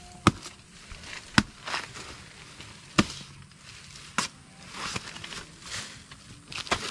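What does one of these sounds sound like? A blade chops into a plant stem with sharp thuds.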